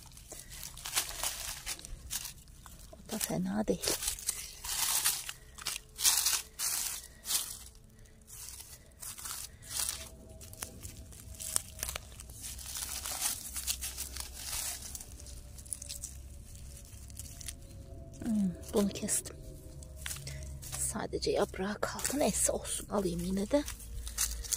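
Hands rustle through dry leaves and plant stems close by.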